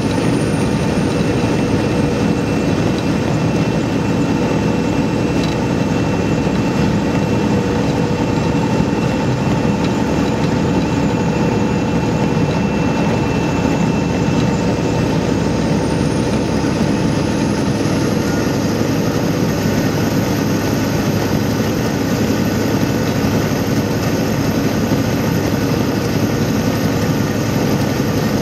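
A vehicle's engine drones steadily.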